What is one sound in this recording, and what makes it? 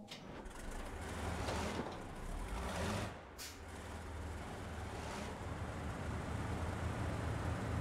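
A heavy truck engine rumbles and revs.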